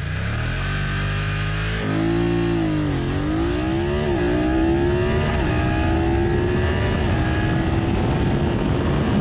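Wind roars past the rider at rising speed.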